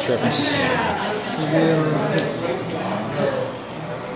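Playing cards rustle and flick as they are shuffled by hand.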